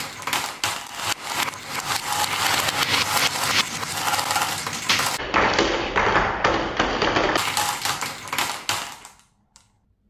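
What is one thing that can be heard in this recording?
Marbles roll and rattle down a track.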